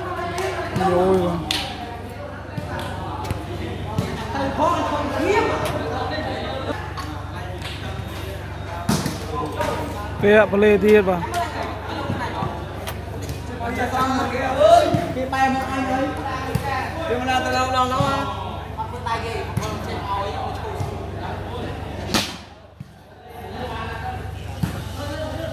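A crowd of men chatters and calls out in a large, echoing space.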